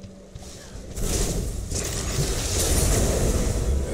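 A bright magical burst whooshes and chimes loudly.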